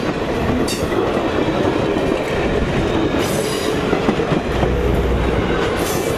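A passenger train rumbles past close by, wheels clattering over the rails.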